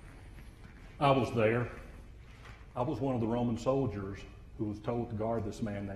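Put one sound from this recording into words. A man speaks dramatically in a large echoing hall.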